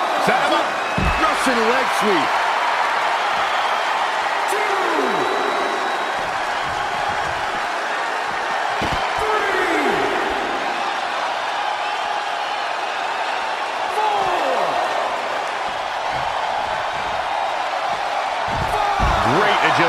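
Bodies thud heavily against a hard floor.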